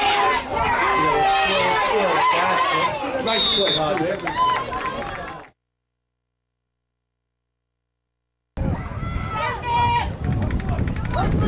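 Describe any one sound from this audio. Young male players shout outdoors.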